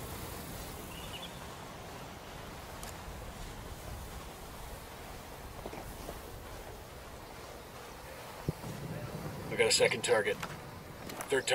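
Footsteps rustle through tall grass and bushes.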